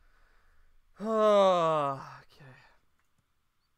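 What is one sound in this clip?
A young man groans loudly.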